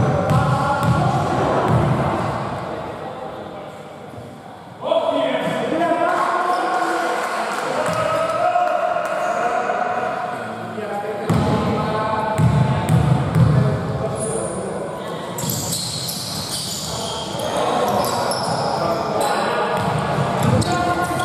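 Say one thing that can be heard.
Men shout and call out across an echoing hall.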